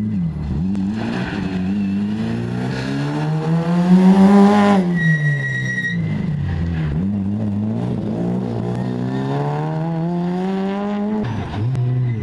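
A rally car engine revs hard and roars past, rising and falling in pitch as gears change.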